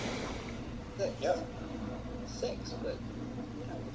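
A baby grunts and fusses softly.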